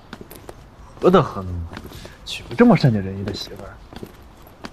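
A young man speaks warmly nearby.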